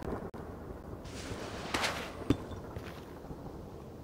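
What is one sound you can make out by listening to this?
A stone block cracks and breaks.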